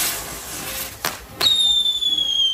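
Firecrackers crackle and pop around the wheel.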